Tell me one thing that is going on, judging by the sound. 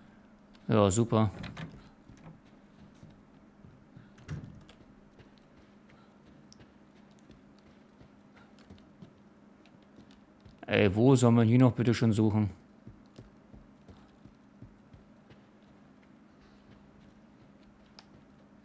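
Footsteps tread slowly on a wooden floor.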